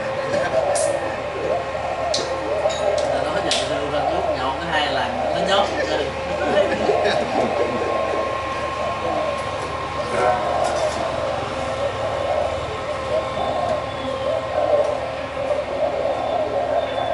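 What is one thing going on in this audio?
Several men talk and chatter nearby.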